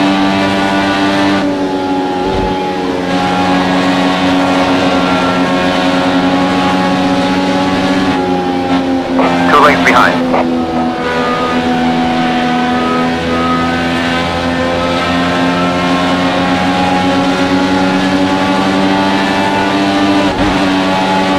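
A racing car engine roars at high revs throughout.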